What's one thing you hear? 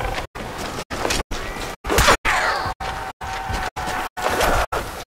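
A zombie growls up close.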